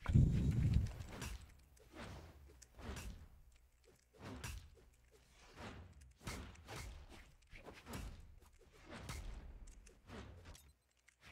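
Quick whooshing swings and punchy hit sounds come again and again in a fast fight.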